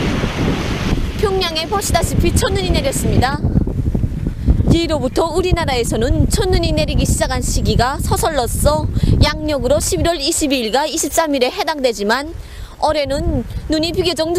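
A young woman speaks clearly into a microphone, close by.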